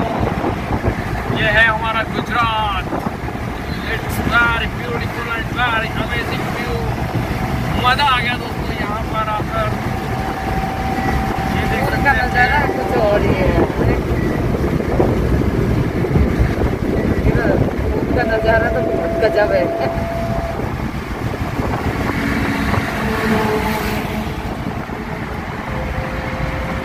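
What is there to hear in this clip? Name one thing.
A petrol minivan engine hums at cruising speed.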